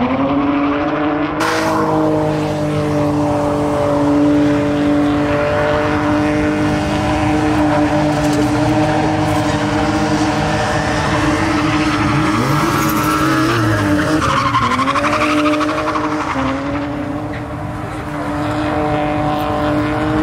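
A car engine revs loudly as it drifts around a track outdoors.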